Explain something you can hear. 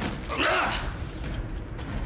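A creature snarls close by.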